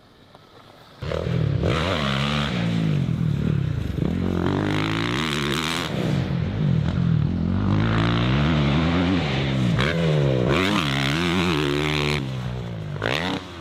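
A motorbike engine revs loudly and whines as it races past.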